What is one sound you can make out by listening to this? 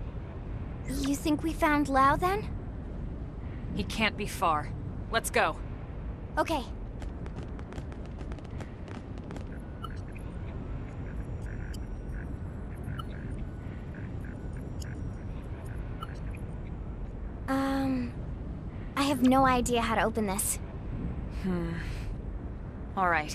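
A woman speaks calmly and firmly.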